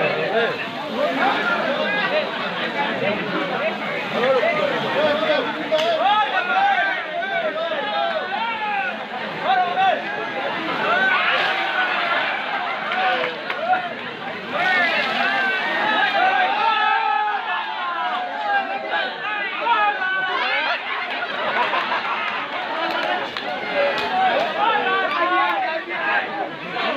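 Young men call out loudly to each other close by.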